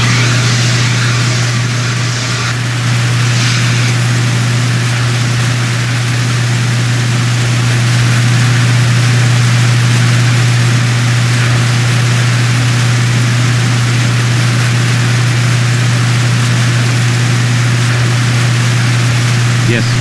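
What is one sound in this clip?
Water sprays steadily from fire hoses.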